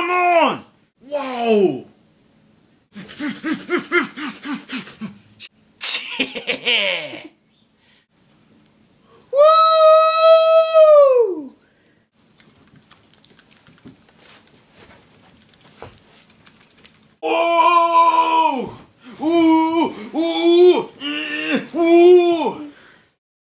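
A man talks and exclaims loudly and with animation close by.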